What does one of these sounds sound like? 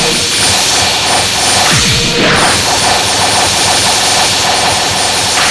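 A magical energy blast whooshes.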